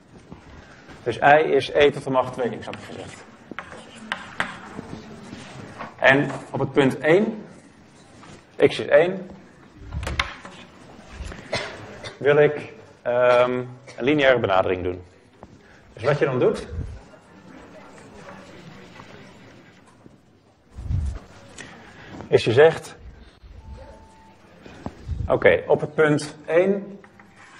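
A young man lectures calmly in a room with a slight echo, heard through a microphone.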